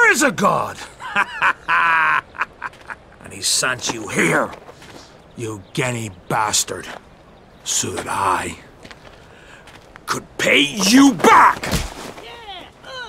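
A man shouts with animation.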